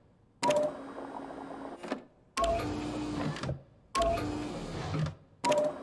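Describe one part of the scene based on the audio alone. A machine button clicks at the start of each burst.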